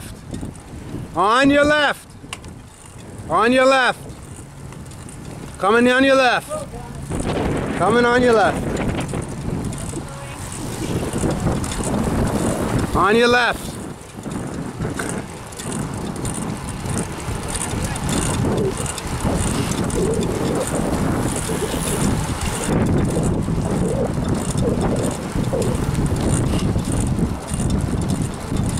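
Wind rushes and buffets outdoors as the bikes ride along.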